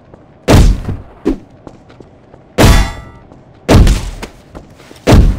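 Heavy guns fire in loud, booming blasts.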